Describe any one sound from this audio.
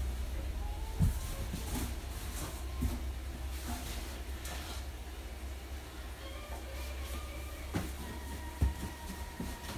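Objects thud into a cardboard box.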